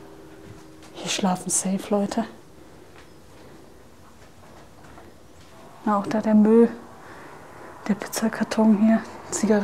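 A young woman speaks with animation into a clip-on microphone, close by.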